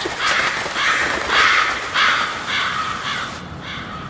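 A flock of birds flaps its wings in flight.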